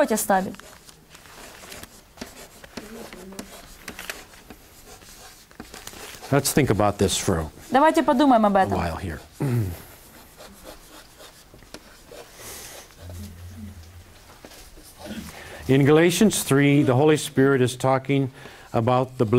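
An elderly man reads aloud in a calm, steady voice, with pauses.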